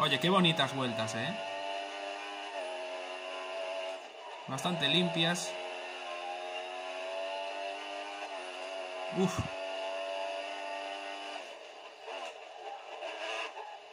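A racing car engine whines at high revs, shifting pitch through the gears.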